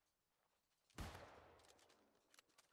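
A musket fires with a sharp bang that rings out.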